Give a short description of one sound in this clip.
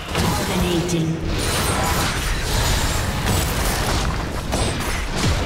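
Magic blasts burst and crackle in a hectic video game battle.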